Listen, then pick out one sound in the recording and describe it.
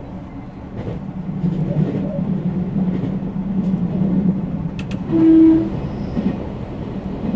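An electric train's rumble swells and echoes inside a tunnel.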